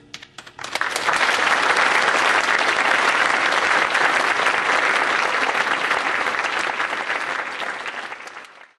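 An audience claps loudly in a large hall, then the applause slowly fades.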